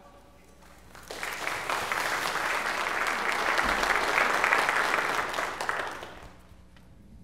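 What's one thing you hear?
A congregation applauds.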